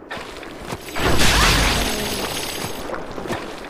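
A loud whooshing slash with a metallic clash rings out.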